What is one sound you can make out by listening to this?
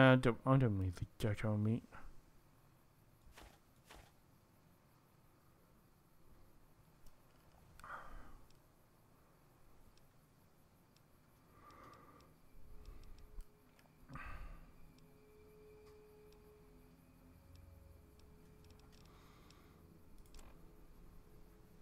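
Soft clicks tick as a game menu is scrolled.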